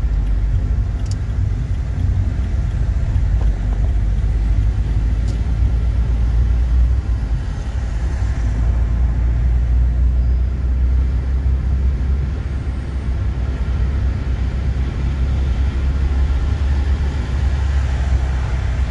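Tyres roll on the road with a steady low rumble.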